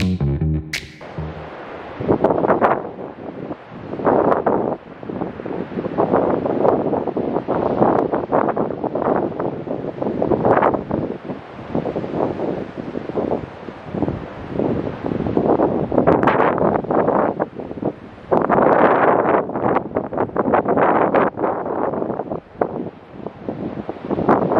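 Waves crash and surge loudly against a pier.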